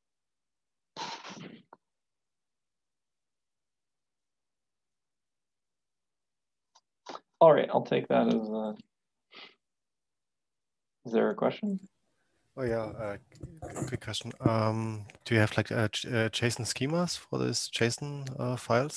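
A man speaks calmly through an online call, with pauses.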